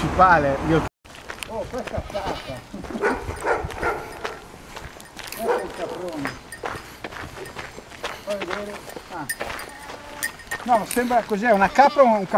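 A man talks calmly nearby, outdoors.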